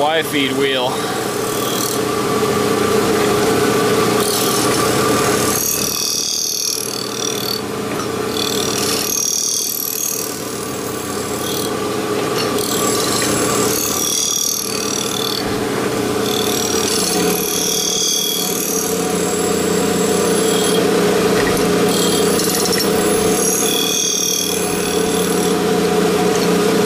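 A grinding wheel hisses against metal in repeated passes.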